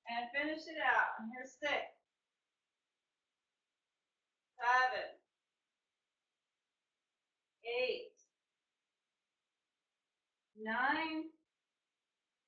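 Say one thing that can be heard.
A woman speaks calmly in short phrases, close to a microphone.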